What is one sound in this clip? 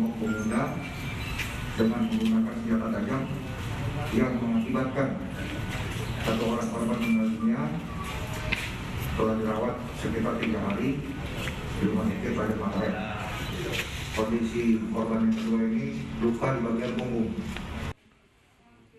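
A middle-aged man speaks calmly into a microphone through a face mask.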